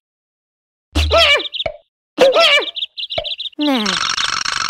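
Small chicks chirp in quick, high bursts.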